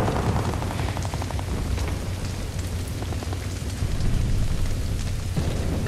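Footsteps crunch and rustle through dry grass.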